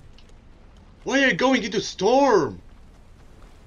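A young man exclaims loudly into a microphone.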